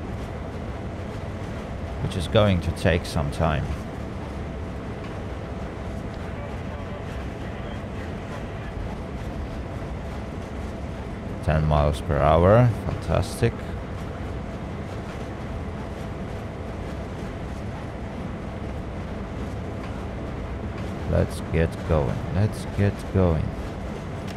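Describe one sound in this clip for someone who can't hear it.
A diesel locomotive engine rumbles steadily as the train rolls along the rails.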